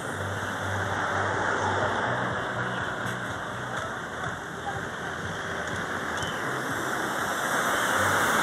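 A bus engine rumbles and idles close by.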